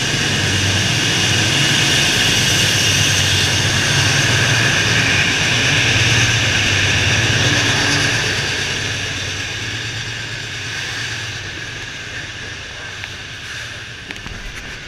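Train wheels squeal and clatter on the rails as the train passes close by.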